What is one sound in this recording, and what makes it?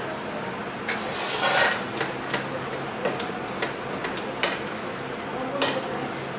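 A spatula scrapes and tosses leaves in a pan.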